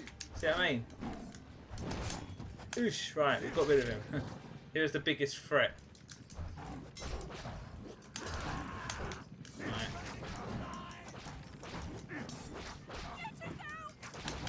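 Swords clash and clang repeatedly.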